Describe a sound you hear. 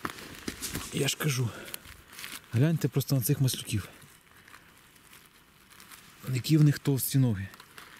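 Fingers rustle through dry pine needles.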